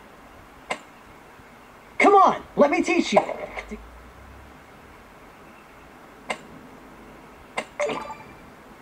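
Gunshots pop from a game played on a phone.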